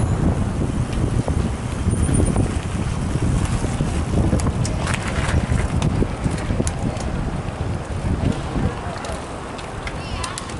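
Wind rumbles past while riding outdoors at speed.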